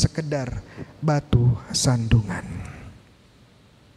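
A young man speaks calmly into a microphone in an echoing room.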